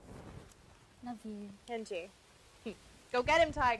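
A woman speaks softly and warmly nearby.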